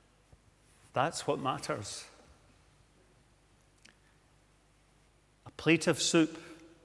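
An elderly man speaks calmly into a microphone in a quiet, echoing hall, with pauses between phrases.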